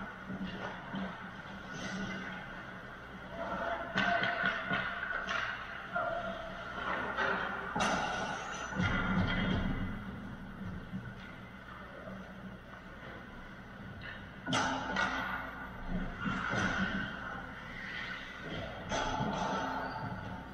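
Skates scrape on ice in a large echoing rink.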